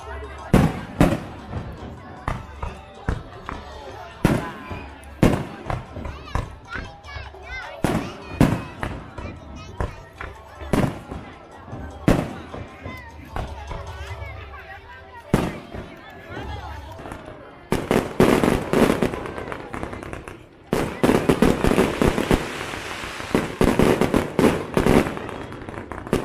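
Fireworks bang and boom in the sky, one after another.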